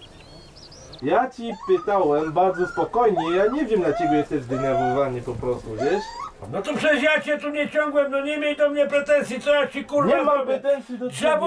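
A man speaks angrily, close by.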